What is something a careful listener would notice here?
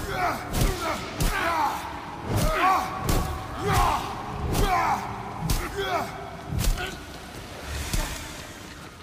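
Ice shatters with sharp cracks.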